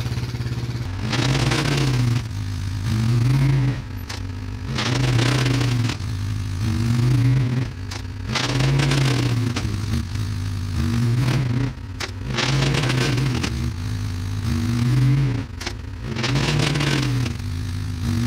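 An all-terrain vehicle engine revs up and down again and again as it drives back and forth.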